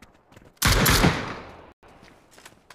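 A rifle fires a quick burst of loud shots that echo away.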